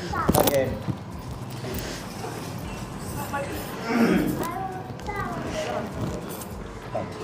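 Men and women talk nearby.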